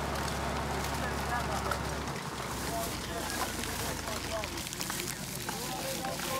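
Plastic rubbish rustles and crackles as hands dig through it.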